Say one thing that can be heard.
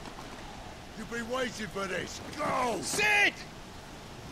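A young man shouts urgently.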